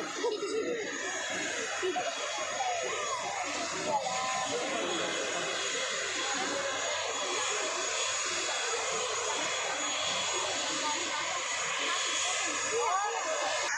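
A propeller plane's engines hum steadily in the distance.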